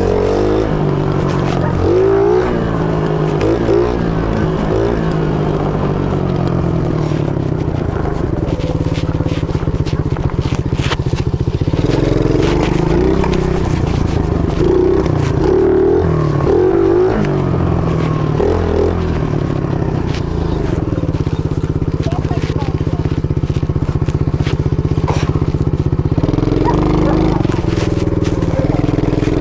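A dirt bike engine revs and buzzes up close, rising and falling in pitch.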